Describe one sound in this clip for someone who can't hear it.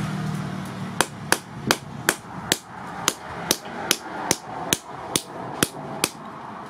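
A hammer strikes metal on an anvil in a quick, steady rhythm.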